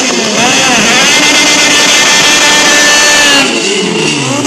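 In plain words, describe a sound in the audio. A car engine revs loudly and steadily.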